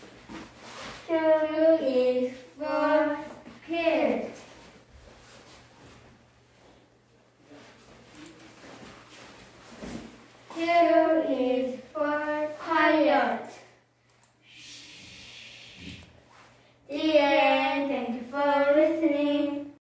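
Young children sing a cheerful song in high voices.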